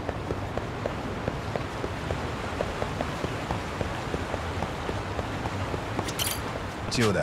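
Footsteps slap quickly on hard ground as a man runs.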